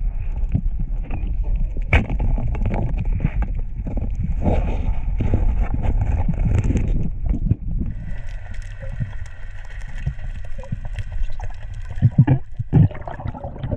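Muffled underwater rumbling and bubbling surrounds the listener.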